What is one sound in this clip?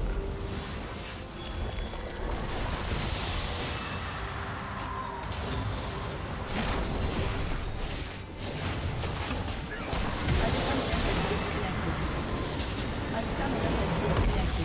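Game spell effects crackle and clash in a fight.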